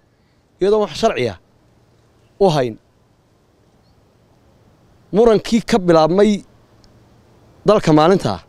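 A man speaks calmly into a microphone close by, in short phrases with pauses.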